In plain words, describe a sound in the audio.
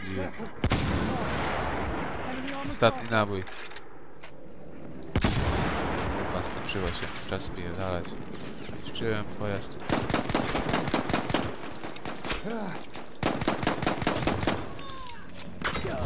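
Explosions boom and rumble repeatedly.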